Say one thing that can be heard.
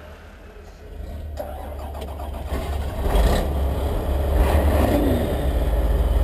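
A bus engine cranks and starts up.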